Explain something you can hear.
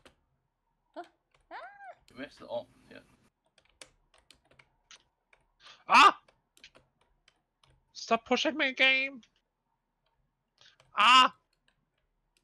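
A young woman speaks and exclaims with animation close to a microphone.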